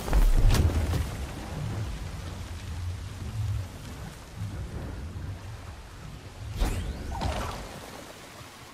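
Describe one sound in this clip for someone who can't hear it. Energy blades hum and whoosh as they swing.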